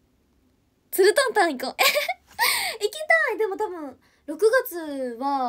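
A young woman laughs loudly and talks with animation.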